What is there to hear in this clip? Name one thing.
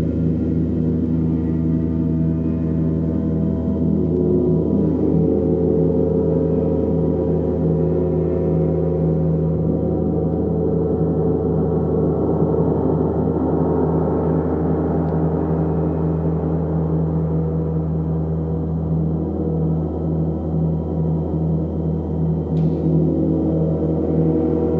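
A large gong hums and swells in deep, shimmering waves.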